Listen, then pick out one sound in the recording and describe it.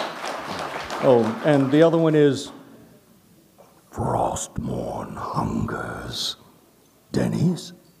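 An elderly man speaks into a microphone with animation.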